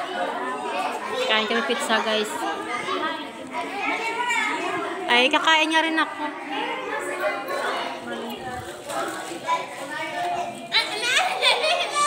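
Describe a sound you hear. Several women talk with animation close by.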